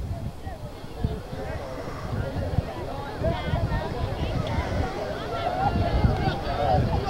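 A crowd of young women chatter and call out nearby, outdoors.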